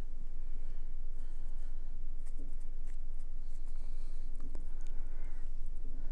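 A brush taps and scrapes softly.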